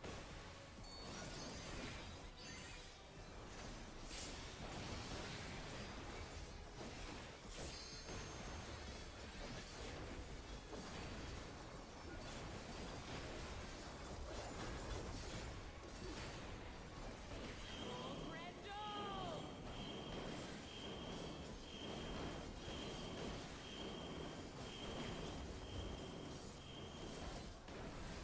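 Magic spells burst and crackle in a fierce battle.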